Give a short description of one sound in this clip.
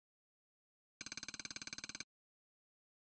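Coins jingle and clink in a rapid shower.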